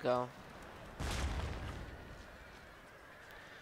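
A cannon fires with a deep boom.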